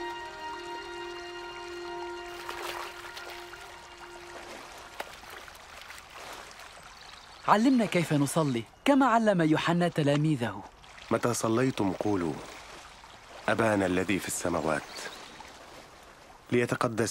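Water splashes and gurgles over rocks in a stream.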